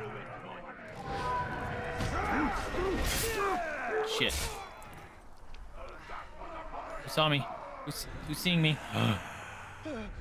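Blades slash and thud in a fight from a game.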